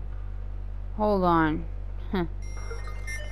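A young woman exclaims briefly close to a microphone.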